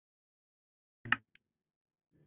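A menu button clicks once.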